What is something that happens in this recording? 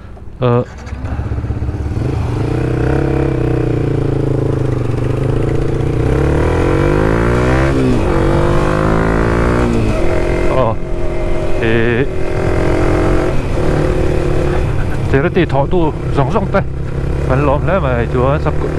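A motorcycle engine drones steadily while riding, rising and falling with the gears.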